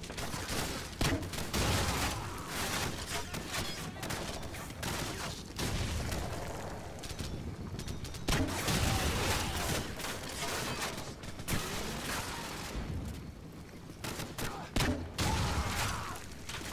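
Gunshots crack in rapid bursts nearby.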